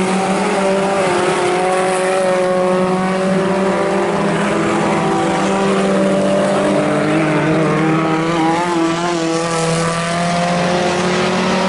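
Race car engines roar and rev loudly.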